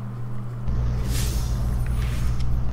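A game energy burst whooshes loudly.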